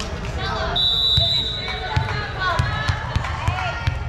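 A volleyball is bounced on a wooden floor.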